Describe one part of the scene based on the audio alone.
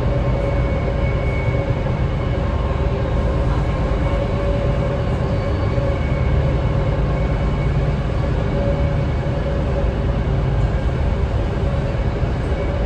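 Wheels whine and squeal faintly on the rails.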